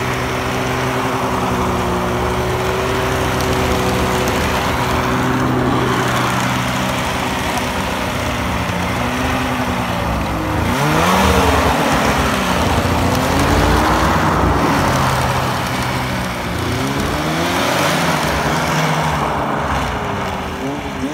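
A snowmobile engine idles and revs up and down close by.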